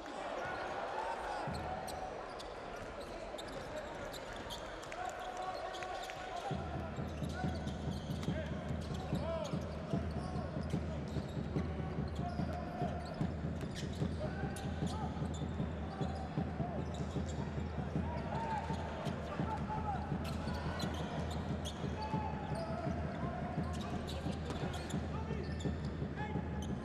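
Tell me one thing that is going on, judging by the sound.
A large indoor crowd murmurs in an echoing arena.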